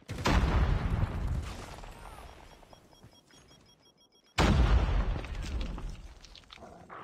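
A gun fires loud, booming blasts that echo and fade.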